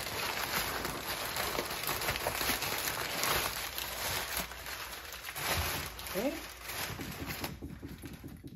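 Paper crinkles and rustles loudly close by.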